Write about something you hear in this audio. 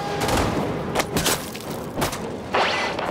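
A blade stabs into flesh with a wet thud.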